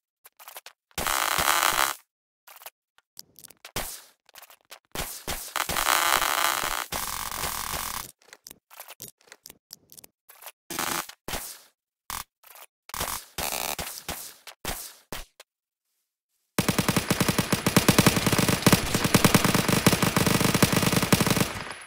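A rifle fires sharp shots.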